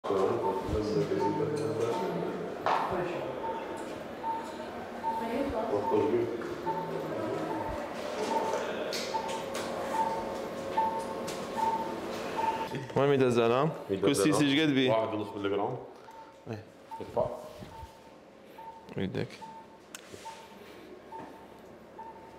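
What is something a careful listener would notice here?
A patient monitor beeps steadily and regularly.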